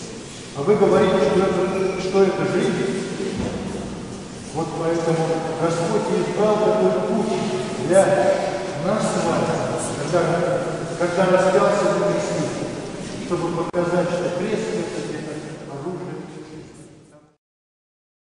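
A crowd of men and women sings together in a large echoing hall, fading out at the end.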